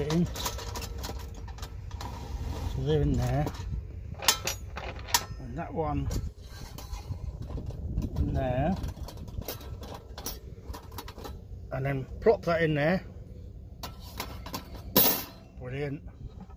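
Thin metal panels clink and click as they are fitted together.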